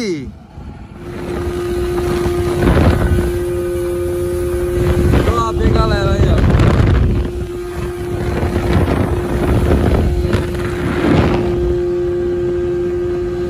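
A boat's outboard motor drones steadily at speed.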